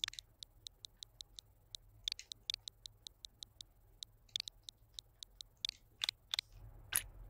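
Short electronic menu clicks tick in quick succession.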